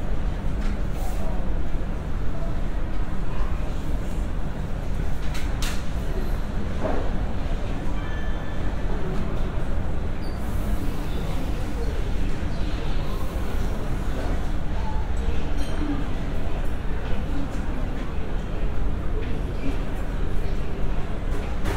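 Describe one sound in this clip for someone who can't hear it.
Jet engines rumble steadily in the distance as an airliner taxis.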